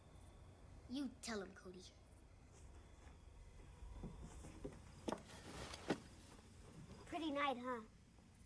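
A boy talks quietly nearby.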